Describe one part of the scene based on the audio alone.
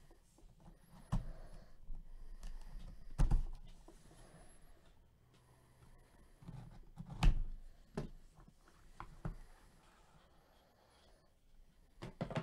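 A cardboard box is tapped and handled with soft knocks.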